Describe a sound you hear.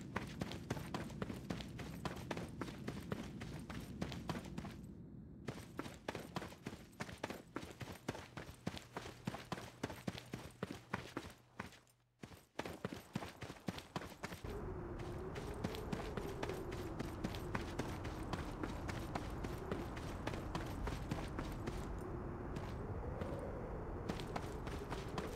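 Quick footsteps run across hard ground.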